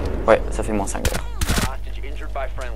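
A rifle fires a few sharp, loud shots indoors.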